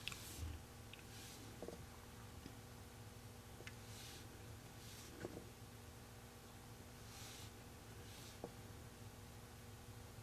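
A dotting tool taps softly on a painted surface.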